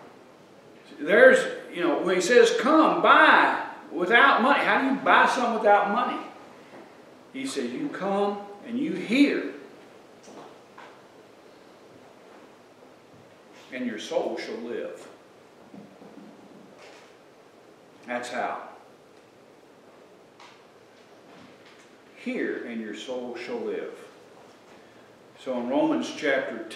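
An elderly man preaches with animation through a microphone, pausing often.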